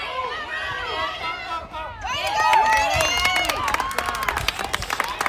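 Young children shout and cheer excitedly outdoors.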